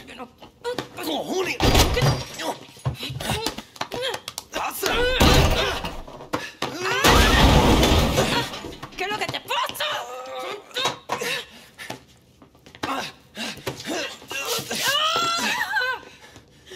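A young man pleads in distress.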